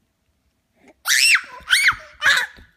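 A baby squeals and babbles excitedly close by.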